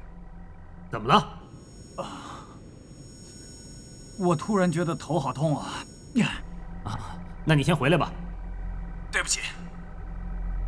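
A man asks a question sharply, close by.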